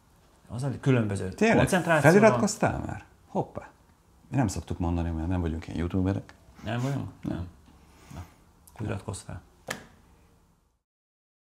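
Another middle-aged man speaks with animation, close to a microphone.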